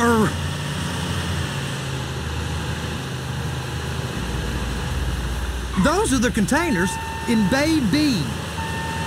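A heavy vehicle's diesel engine rumbles steadily.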